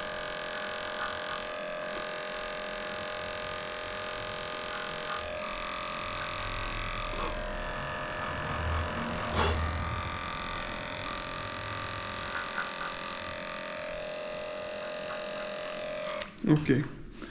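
Electric clippers buzz steadily while trimming fur.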